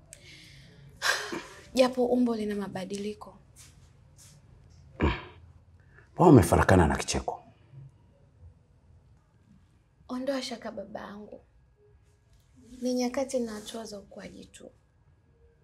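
A young woman speaks calmly in a low voice, close by.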